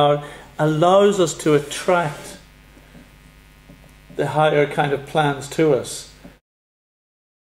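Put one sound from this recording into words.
A man speaks calmly and conversationally nearby.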